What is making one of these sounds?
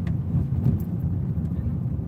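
A windscreen wiper sweeps once across the glass.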